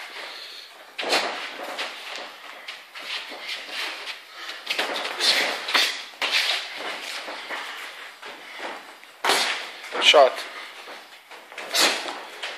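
Boxing gloves thud against headguards and bodies.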